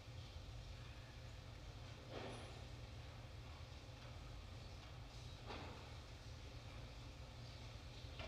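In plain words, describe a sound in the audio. A man walks with soft footsteps in a large, echoing hall.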